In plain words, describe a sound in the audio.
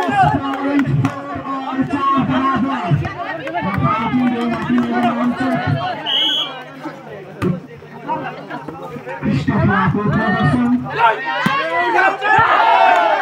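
A crowd of young men cheers and shouts outdoors.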